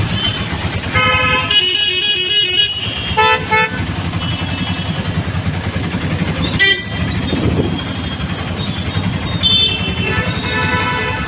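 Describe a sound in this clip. Vehicle horns honk repeatedly in traffic.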